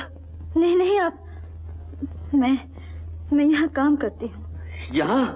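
A young woman speaks tearfully, close by.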